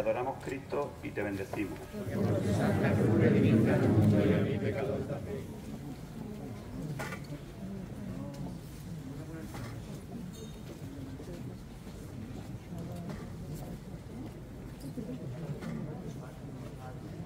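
A large crowd murmurs and talks outdoors.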